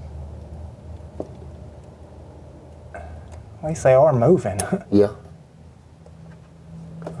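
Metal parts click and clink under a man's hands.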